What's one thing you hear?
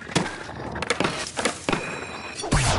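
A skateboard clacks as it lands and scrapes.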